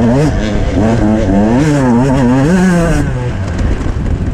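A dirt bike engine revs loudly up close, rising and falling in pitch.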